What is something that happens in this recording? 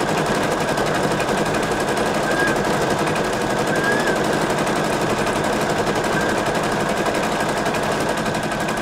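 An embroidery machine stitches with a fast, steady rattling hum.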